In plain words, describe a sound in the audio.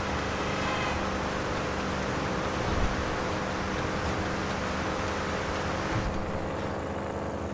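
Tyres roll over gravel and dirt.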